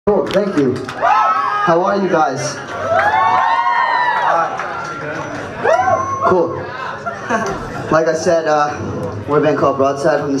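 A singer sings into a microphone over loudspeakers.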